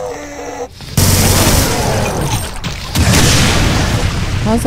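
A rapid-fire gun shoots in a quick burst.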